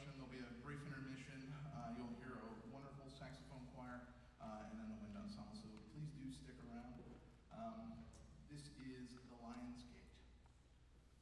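A concert band plays in a large hall, then stops.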